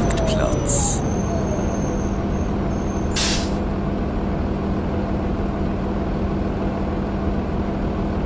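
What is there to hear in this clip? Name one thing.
A diesel city bus engine idles.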